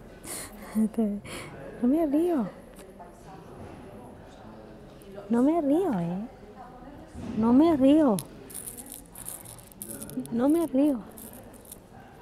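A middle-aged woman speaks close by.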